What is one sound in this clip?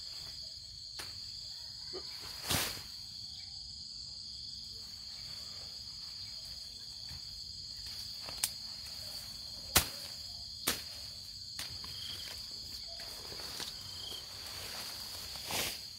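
Leafy plants rustle and swish as someone pushes through the undergrowth.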